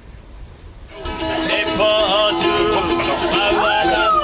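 A man plays a ukulele, strumming bright chords.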